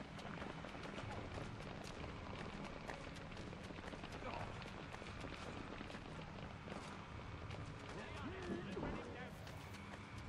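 Footsteps run quickly over stone.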